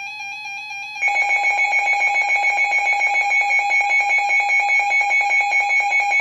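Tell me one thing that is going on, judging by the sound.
A radio alarm sounds a loud, rapidly pulsing beep.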